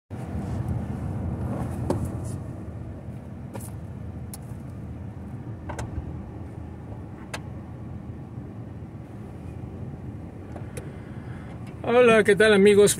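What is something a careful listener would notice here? A car engine idles in slow traffic.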